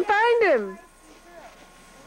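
A child talks with animation nearby.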